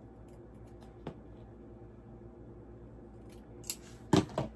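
Scissors snip through material.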